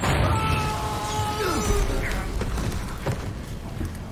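Flames burst with a loud whoosh.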